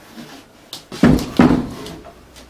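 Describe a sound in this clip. A hand thumps on a wooden table.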